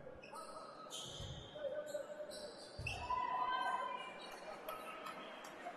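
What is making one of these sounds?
Sneakers squeak sharply on a hardwood court in an echoing hall.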